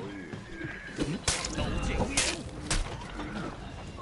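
Metal blades clash and ring in a fight.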